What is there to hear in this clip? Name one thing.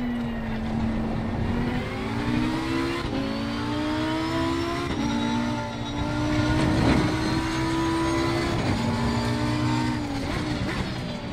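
A race car engine roars loudly, rising in pitch through each gear and dropping sharply at each gear change.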